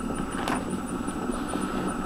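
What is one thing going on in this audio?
A windscreen wiper sweeps across the glass.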